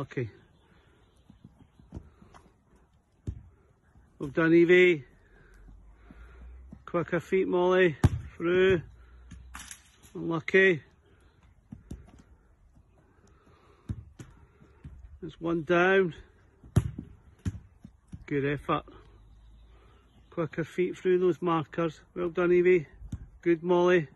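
A football is kicked on grass with dull thuds.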